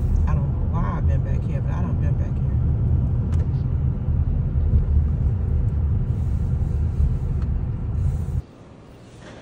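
A car engine rumbles while driving.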